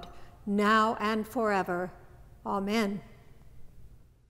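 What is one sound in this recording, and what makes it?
An older woman speaks calmly through a microphone.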